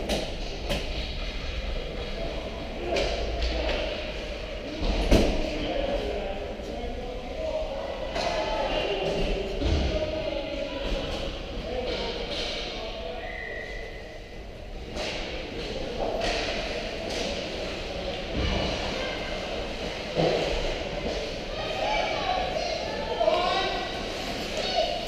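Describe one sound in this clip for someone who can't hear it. Hockey sticks and pucks clack sharply now and then.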